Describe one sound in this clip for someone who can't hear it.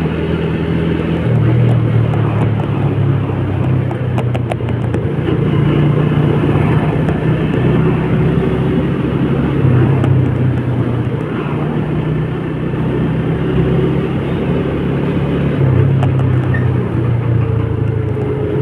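A scooter engine hums steadily up close.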